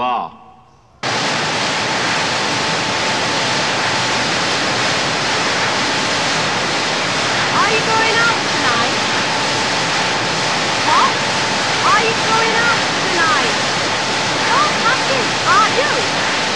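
Production-line machinery roars.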